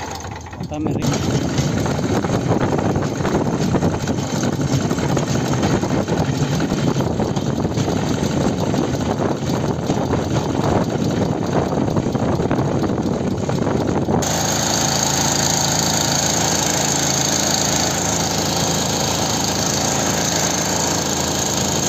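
Metal wheels rumble and clatter along rails.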